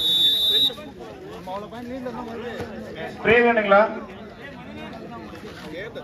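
Young men talk and call out to each other outdoors.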